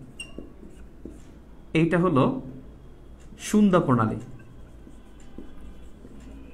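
A marker squeaks and scratches across a whiteboard.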